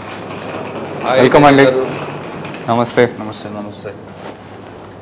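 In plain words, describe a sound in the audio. A man speaks warmly in greeting.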